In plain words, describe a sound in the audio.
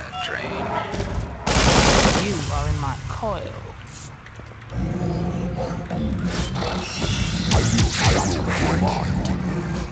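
Game sound effects of robots fighting clank and crackle.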